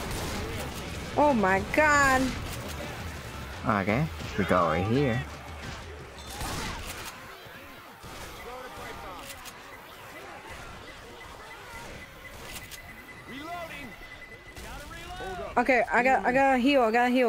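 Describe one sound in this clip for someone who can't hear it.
A shotgun fires with loud bangs.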